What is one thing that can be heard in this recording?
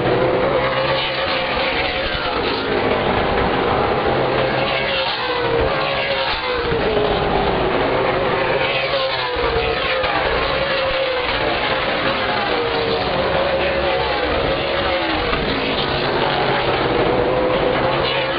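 Race car engines roar loudly and rise and fall in pitch as cars speed past.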